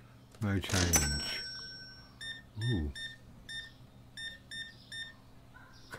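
A checkout scanner beeps several times in quick succession.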